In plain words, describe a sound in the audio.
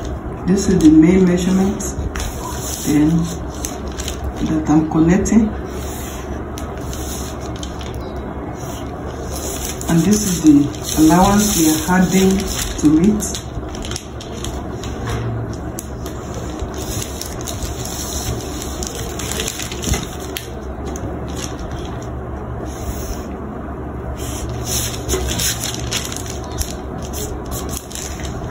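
A marker pen squeaks and scratches across paper.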